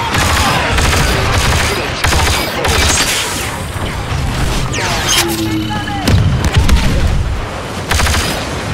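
Blaster rifles fire in rapid bursts of zaps.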